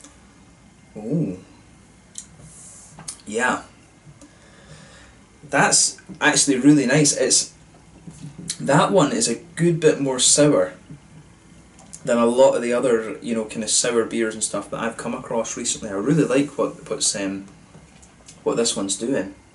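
A young man speaks calmly and casually close to a microphone.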